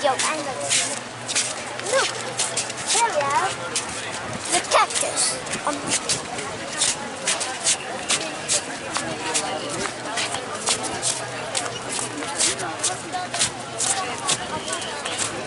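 Footsteps tap on pavement while walking.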